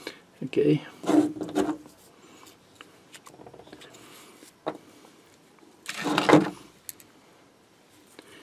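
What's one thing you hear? Small metal parts of a lighter click and tap as they are handled.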